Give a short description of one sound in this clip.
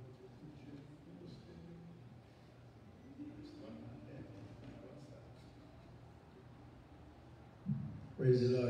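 Men talk quietly at a distance in an echoing hall.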